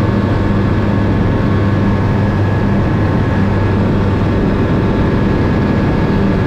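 A small plane's propeller engine drones loudly and steadily up close.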